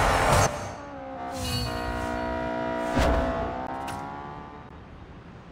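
A chime rings as a victory tune plays.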